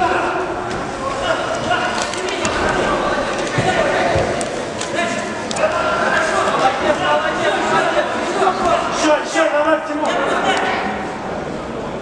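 Shoes squeak and shuffle on a ring canvas.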